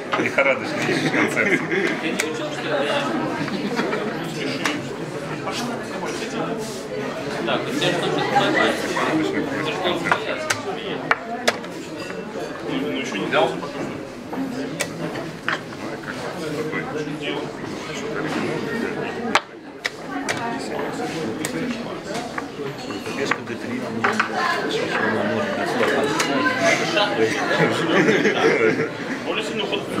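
Chess pieces click down on wooden boards.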